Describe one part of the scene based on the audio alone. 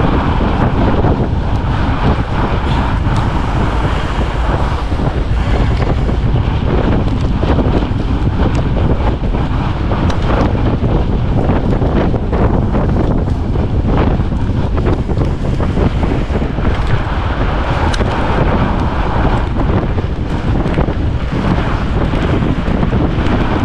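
A bicycle chain and gears rattle with small clicks.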